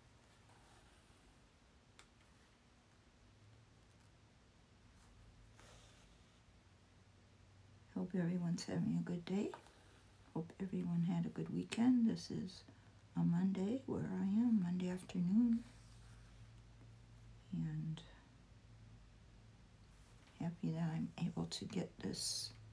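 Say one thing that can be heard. Thread is pulled through cloth with a soft rustle.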